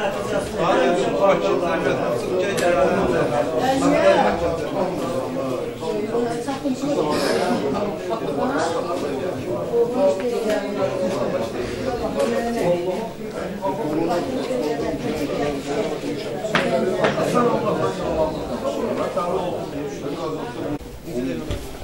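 A crowd of men murmurs and talks all around in an echoing room.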